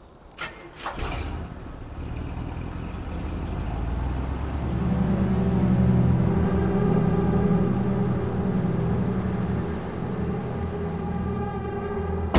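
A small van engine hums as the van drives along.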